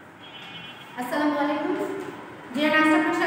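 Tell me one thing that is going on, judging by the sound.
A young woman speaks calmly and clearly into a nearby microphone.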